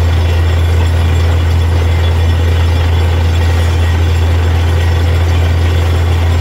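A drilling rig's engine rumbles loudly and steadily.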